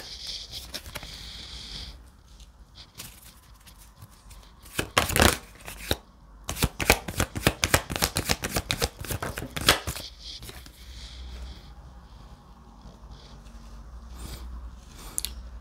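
Cards slap softly onto a table.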